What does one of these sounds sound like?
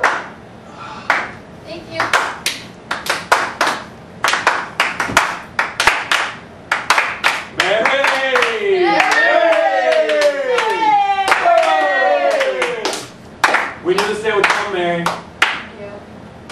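Performers clap their hands in quick bursts.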